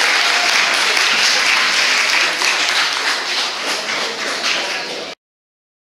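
Young people chatter excitedly nearby.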